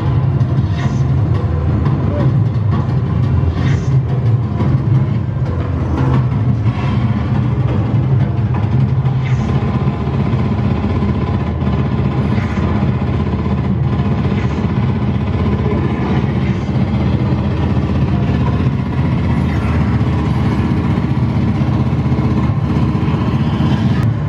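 A motion simulator machine hums and whirs as it moves.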